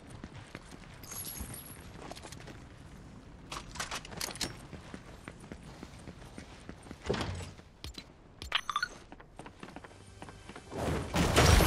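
Footsteps patter on a hard floor.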